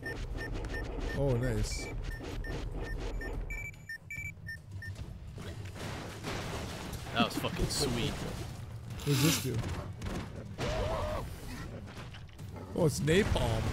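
Explosions boom loudly in a video game.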